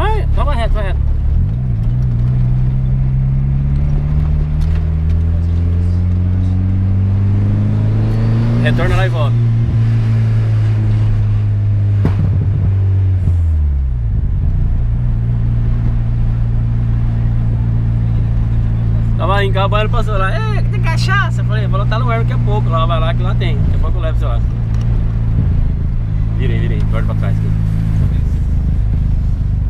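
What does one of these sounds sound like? A car engine hums and revs up through the gears.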